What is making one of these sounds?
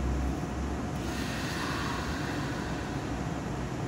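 A train's brakes hiss.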